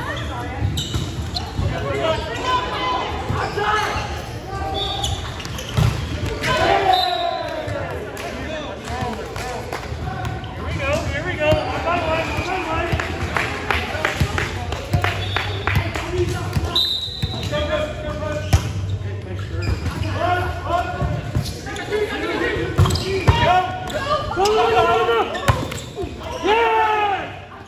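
Men and women shout and call out across a large echoing gym.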